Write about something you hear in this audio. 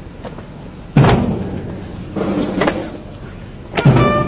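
A group of soldiers stamp their boots on the ground in unison.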